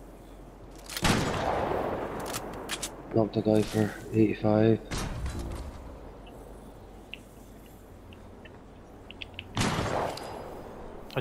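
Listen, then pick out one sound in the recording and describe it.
Gunshots ring out in short, loud bursts.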